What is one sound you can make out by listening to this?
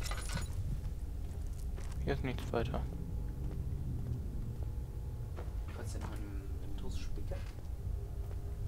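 Footsteps thud slowly on a stone floor.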